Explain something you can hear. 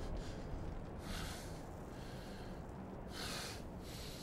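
A man breathes heavily.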